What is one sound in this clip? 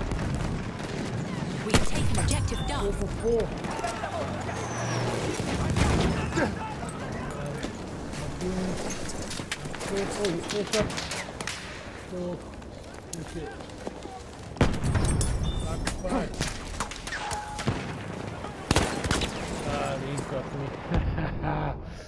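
Gunfire rattles on and off in the distance.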